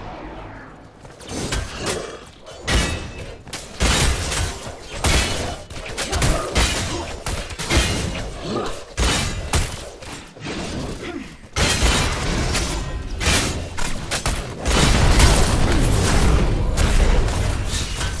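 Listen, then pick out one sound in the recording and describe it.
Game characters clash with sharp hits and bursts of magic.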